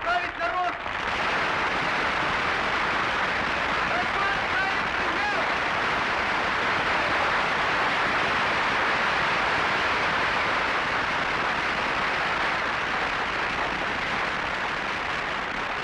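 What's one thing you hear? A large crowd applauds loudly and steadily.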